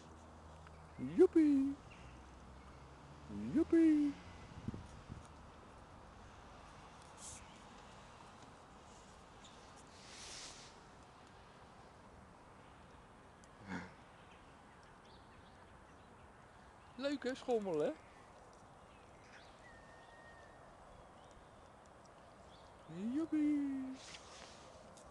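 A small child babbles and squeals briefly now and then, close by.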